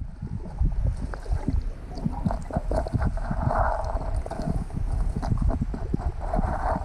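A diver breathes underwater through a regulator, with bubbles rushing out.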